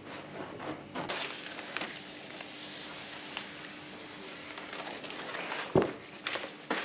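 A sheet of backing paper crackles and rustles as it is peeled off.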